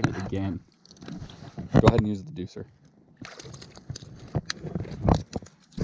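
A fishing reel clicks as the line is wound in.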